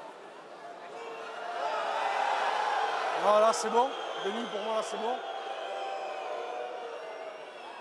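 A large crowd cheers and roars, swelling loudly.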